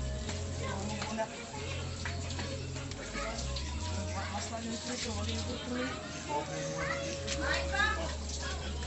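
Meat skewers sizzle over hot coals.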